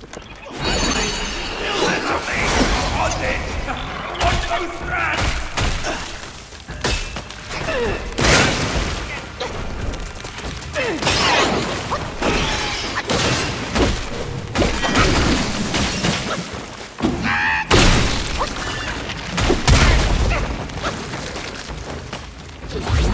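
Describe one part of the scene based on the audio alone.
A giant creature screeches and roars.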